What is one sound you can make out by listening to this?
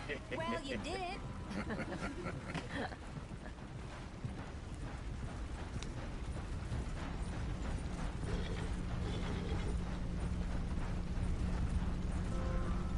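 A wagon rumbles and creaks along a dirt track.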